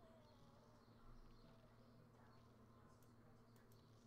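A cartoon plant shoots peas with soft popping sounds.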